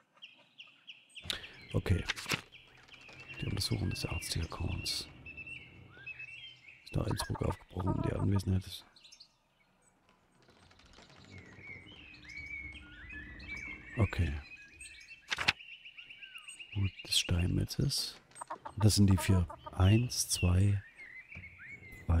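A man talks calmly into a close microphone.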